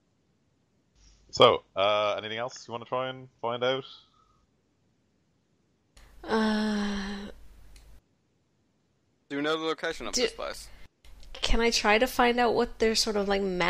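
A woman talks and laughs over an online call.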